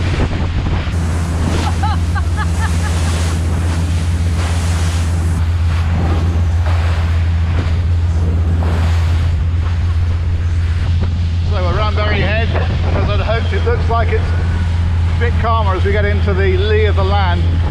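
A boat engine drones loudly and steadily.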